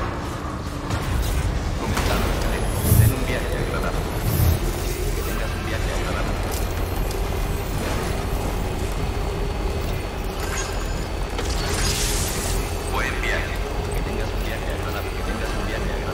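Tyres roll over pavement.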